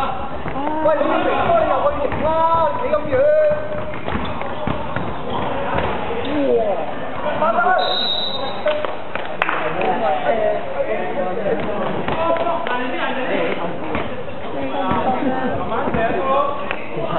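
Young men shout and call to each other across a large echoing hall.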